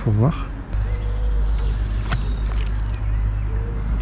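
A fish splashes briefly at the surface of still water.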